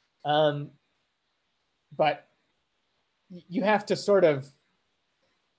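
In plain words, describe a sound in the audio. A young man speaks calmly in short bursts over an online call.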